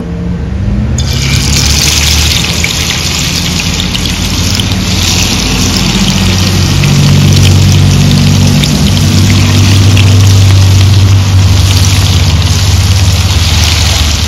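Hot oil sizzles and crackles as fish fries.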